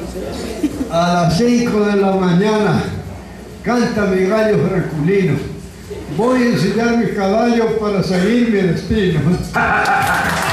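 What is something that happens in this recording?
An elderly man speaks slowly into a microphone, heard through a loudspeaker.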